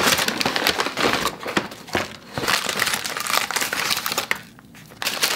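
A paper bag rustles and crinkles close by.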